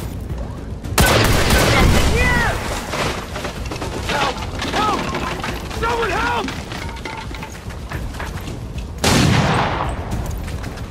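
Explosions boom loudly and rumble away.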